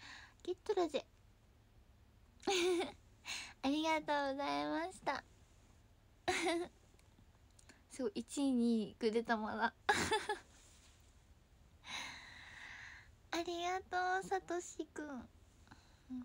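A young woman talks cheerfully and close to a microphone.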